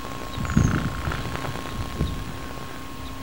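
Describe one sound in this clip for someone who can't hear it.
Wind gusts outdoors and buffets briefly.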